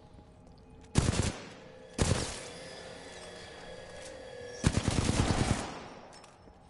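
Gunfire rattles out in short loud bursts.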